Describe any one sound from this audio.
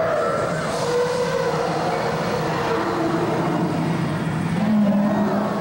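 A man sings loudly into a microphone, heard through loudspeakers in a large echoing hall.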